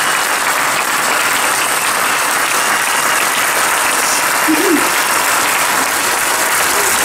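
A large outdoor crowd claps and cheers steadily.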